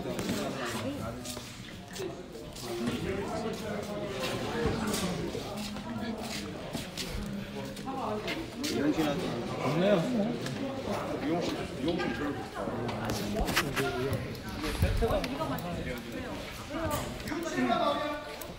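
A crowd of men and women chatter around the listener.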